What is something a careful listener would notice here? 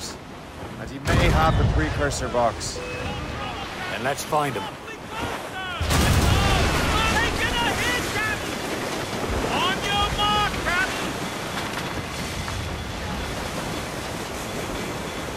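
Ocean waves rush and splash against a ship.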